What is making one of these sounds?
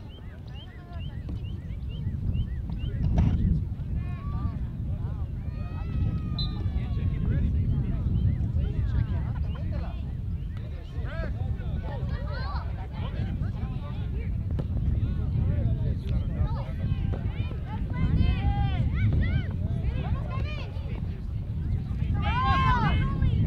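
Young players shout to each other in the distance.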